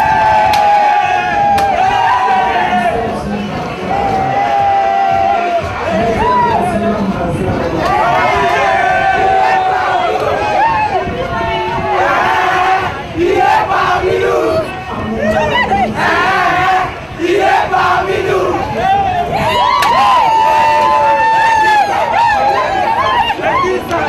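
Hands beat on drums and basins in a fast rhythm.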